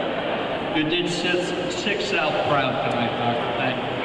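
An elderly man speaks into a microphone with good humour in a large echoing hall.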